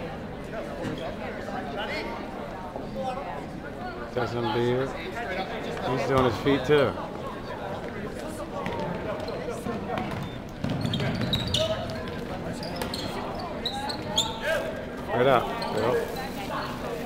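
A crowd of spectators murmurs and calls out in a large echoing gym.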